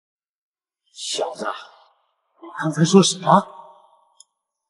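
An older man asks a question in a surprised tone.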